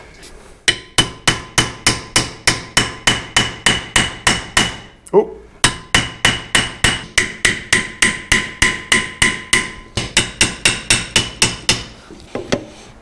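A hammer strikes metal in a fast, steady rhythm with ringing clangs.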